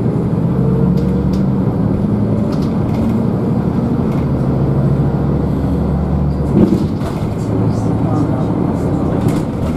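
A bus interior rattles and clicks over bumps.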